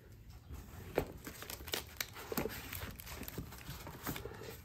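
A heavy metal part knocks softly against cardboard.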